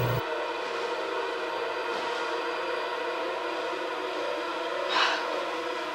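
A blanket rustles as a woman pulls it up.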